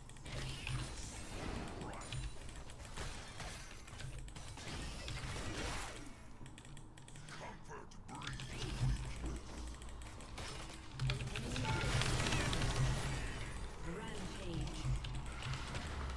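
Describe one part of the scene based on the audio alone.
Magic spells whoosh and burst in a video game fight.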